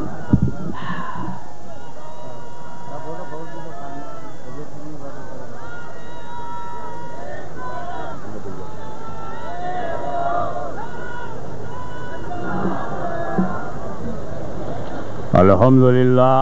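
An elderly man speaks with animation through a microphone and loudspeakers.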